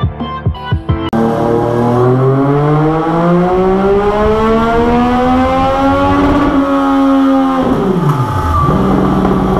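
A motorcycle engine roars, climbing steadily in pitch, then drops away.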